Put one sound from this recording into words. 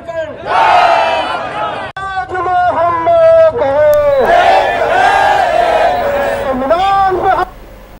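A crowd of men chants slogans in response outdoors.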